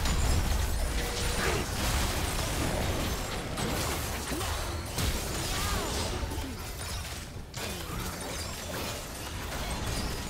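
Magic spells whoosh and crackle during a video game battle.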